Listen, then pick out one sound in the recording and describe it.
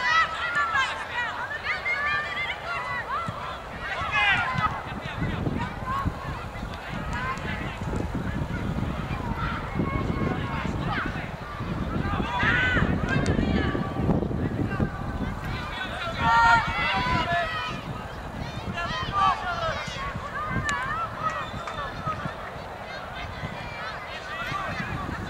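Young women shout and call to each other outdoors across an open field.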